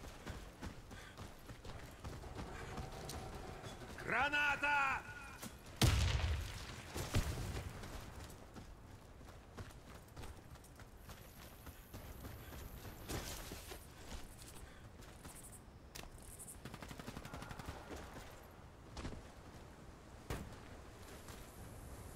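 Footsteps crunch steadily on sand and stone.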